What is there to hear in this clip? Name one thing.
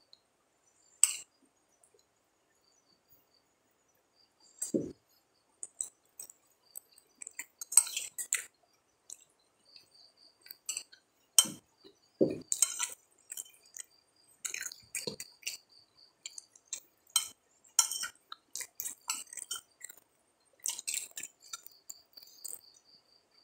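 A spoon clinks and scrapes against a plate.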